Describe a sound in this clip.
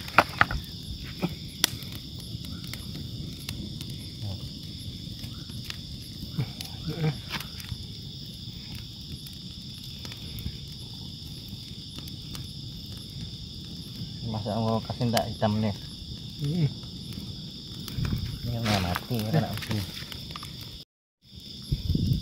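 A hand scrapes and rustles through dry leaves and loose soil.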